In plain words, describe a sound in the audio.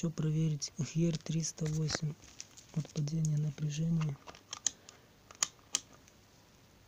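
Metal test clips click and rattle as a hand handles them.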